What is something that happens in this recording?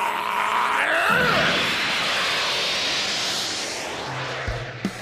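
A crackling energy blast roars loudly.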